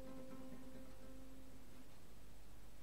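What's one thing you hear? An electric guitar chord rings out and slowly fades.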